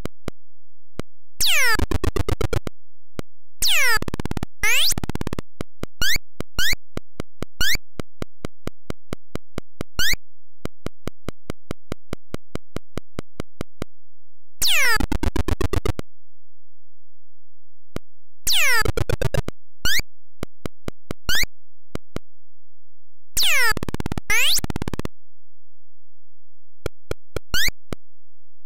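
Rapid electronic clicks tick along as a game character walks.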